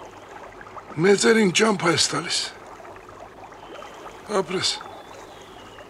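An elderly man speaks calmly up close.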